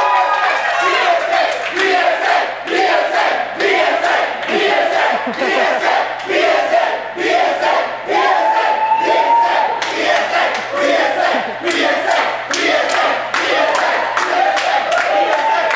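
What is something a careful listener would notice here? A group of young men and women chants loudly in a steady rhythm.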